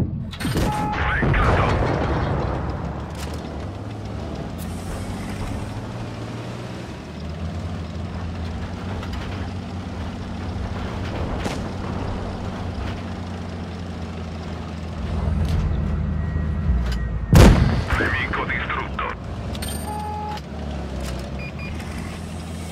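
A tank engine rumbles as it drives.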